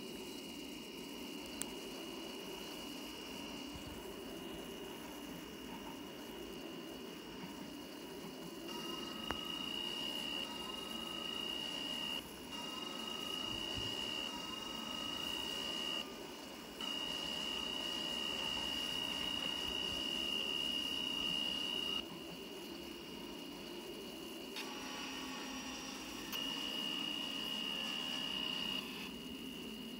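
A train's electric motor hums and whines steadily as it runs along the track.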